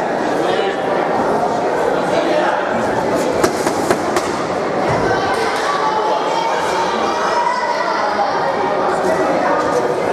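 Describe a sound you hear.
Boxing gloves thud against each other and the body.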